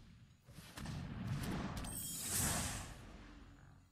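A whoosh sweeps across as a card is played.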